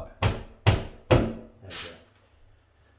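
A hammer taps sharply on metal several times.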